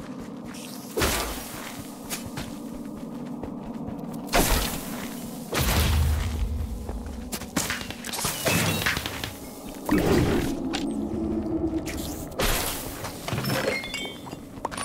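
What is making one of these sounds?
Loud magical blasts and explosions boom in short bursts.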